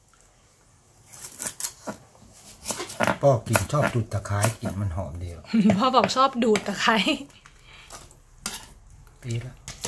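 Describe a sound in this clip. A knife chops on a wooden board.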